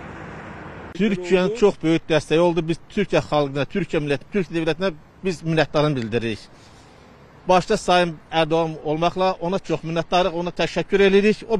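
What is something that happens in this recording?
An elderly man speaks calmly and close into a microphone.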